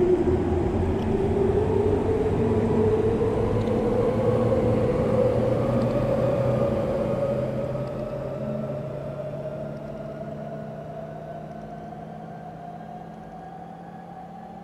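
An electric train pulls away with a rising motor whine that slowly fades.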